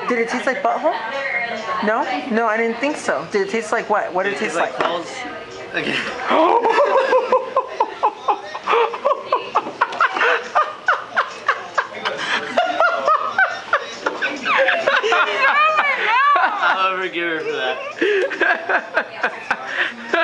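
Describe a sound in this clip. A young woman giggles close by.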